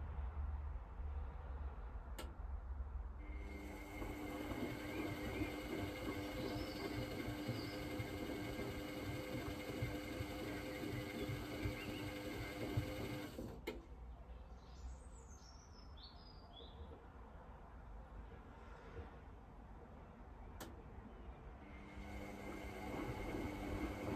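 A washing machine drum turns with a steady hum.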